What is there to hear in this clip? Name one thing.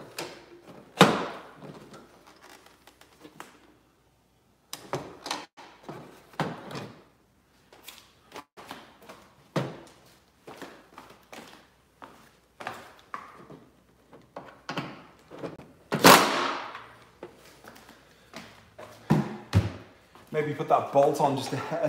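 Plastic parts click and snap into place.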